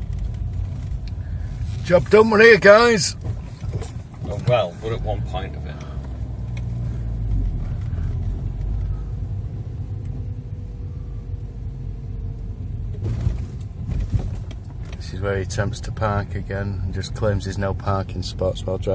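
A car engine hums low inside the car.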